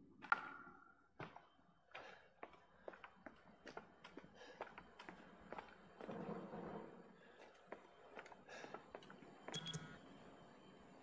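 Footsteps thud steadily on a hard concrete floor, in a quiet echoing room.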